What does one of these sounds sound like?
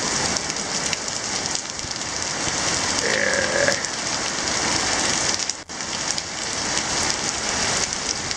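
Water gushes from a drainpipe and splashes onto pavement.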